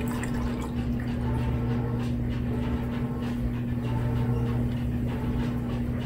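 Soda pours from a bottle and fizzes in a glass.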